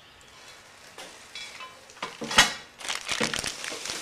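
Small plastic parts clatter and rustle as a hand handles them.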